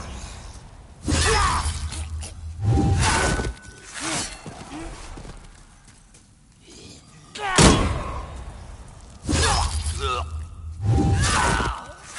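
A creature snarls and growls.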